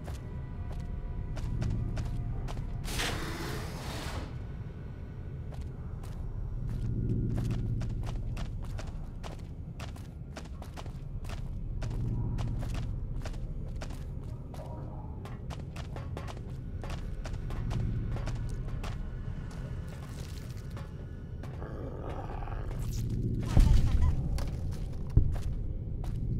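Heavy footsteps thud steadily on hard floors.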